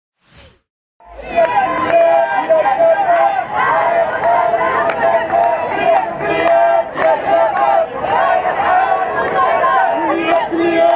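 A large crowd chants and sings loudly outdoors.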